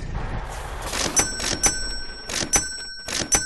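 Coins clink and chime in quick succession.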